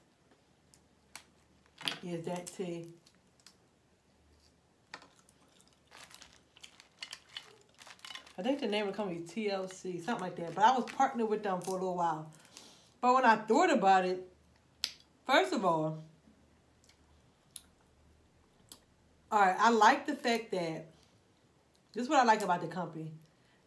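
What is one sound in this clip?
Crawfish shells crack and snap as they are peeled.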